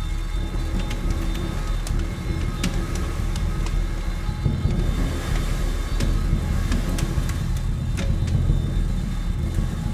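A drummer plays low rumbling drum beats.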